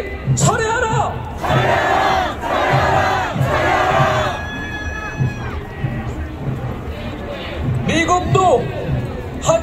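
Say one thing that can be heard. A voice shouts loudly through a loudspeaker.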